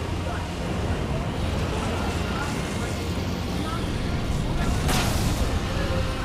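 Flames roar with a deep, steady rumble.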